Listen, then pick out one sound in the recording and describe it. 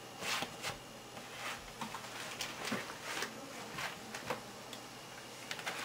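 A newspaper rustles and crinkles as its pages are handled.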